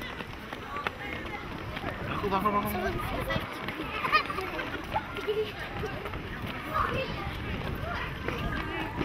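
Children shout and chatter outdoors.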